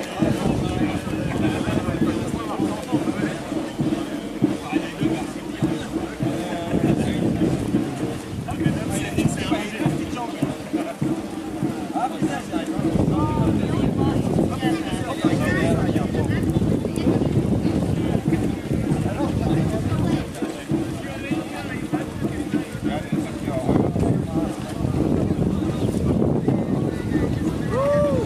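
A crowd of men and women chatters outdoors as they walk.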